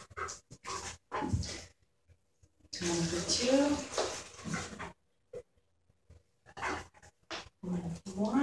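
A woman speaks nearby to a dog in a bright, encouraging voice.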